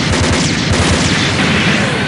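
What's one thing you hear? A beam weapon fires with a sharp zap.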